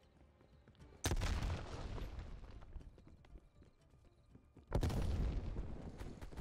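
Gunfire booms loudly in two sudden bursts.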